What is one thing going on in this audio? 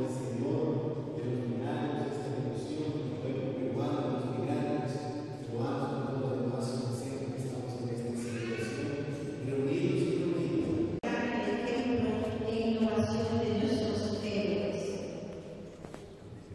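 A congregation sings together in an echoing hall.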